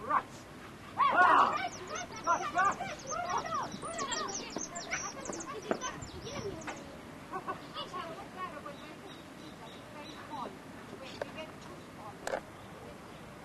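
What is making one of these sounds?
Young girls shout and chatter with animation, heard from a distance outdoors.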